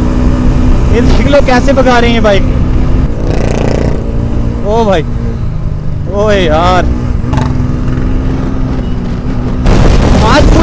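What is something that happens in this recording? A motorcycle engine drones steadily up close.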